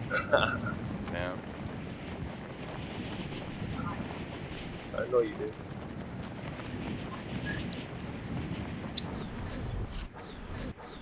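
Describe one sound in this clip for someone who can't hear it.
Wind rushes steadily past while gliding down through the air.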